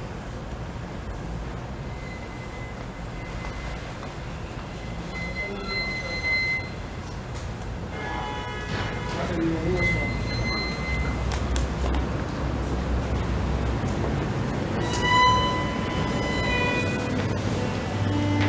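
A solo violin is bowed in a small hall.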